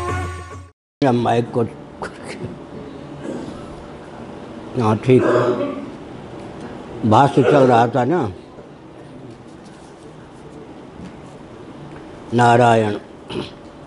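An elderly man speaks slowly and calmly into a microphone, with pauses.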